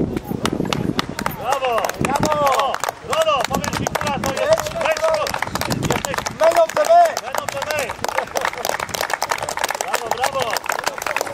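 Players clap their hands in rhythm.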